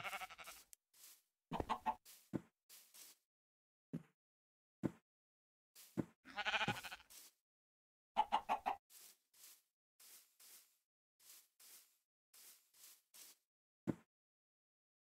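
Footsteps rustle and crunch on grass at a walking pace.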